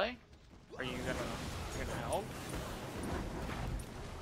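Fantasy combat sound effects clash and whoosh.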